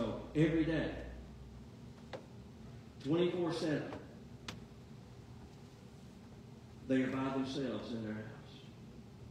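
A man speaks through a microphone in a large echoing hall, in short phrases with pauses.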